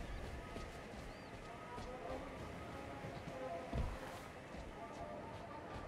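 Footsteps run over dry grass and dirt.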